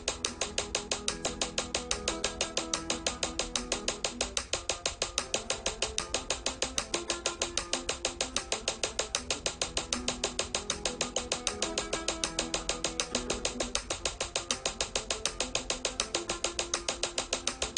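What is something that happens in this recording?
A flamenco guitar is played with fast fingerpicked tremolo.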